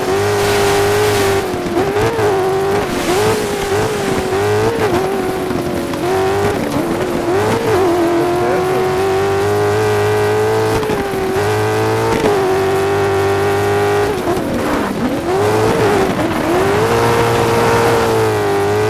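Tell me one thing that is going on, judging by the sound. Tyres crunch and skid on loose gravel.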